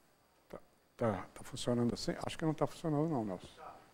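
A man speaks in a room.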